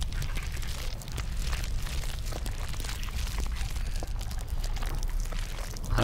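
Footsteps echo on a stone floor.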